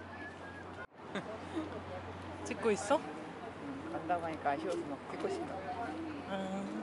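A crowd of men and women chatter and murmur nearby outdoors.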